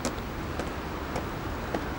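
Footsteps fall on a hard floor.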